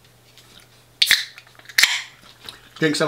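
A drink can snaps and hisses open.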